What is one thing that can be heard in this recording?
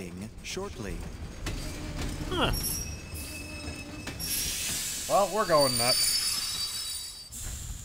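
A train rumbles as it rolls in.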